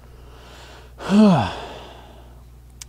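A man gives a short, loud sigh close to a microphone.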